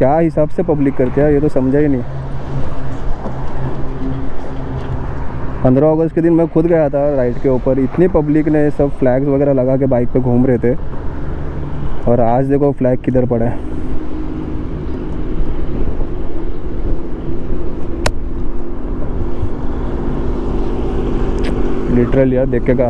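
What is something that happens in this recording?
A motorcycle engine runs as the motorcycle rides along a highway.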